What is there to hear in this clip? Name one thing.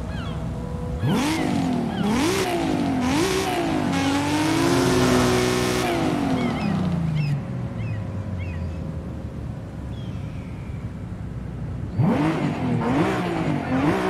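A car engine revs up and down sharply, close by.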